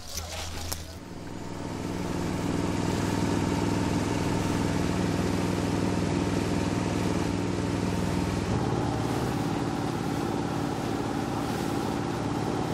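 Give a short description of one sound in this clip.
Water rushes past a moving boat.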